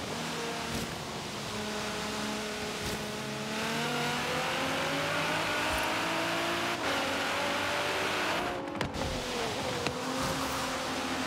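A sports car engine roars and revs, rising in pitch as it speeds up.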